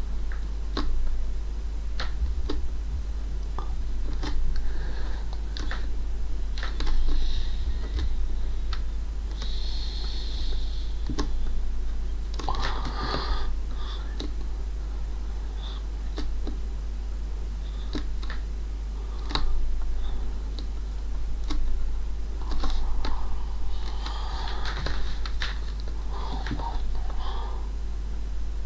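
A pen scratches and taps on paper close by.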